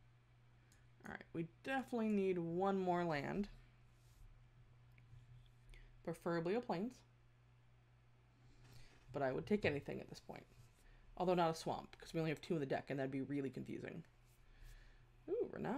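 A woman talks with animation close to a microphone.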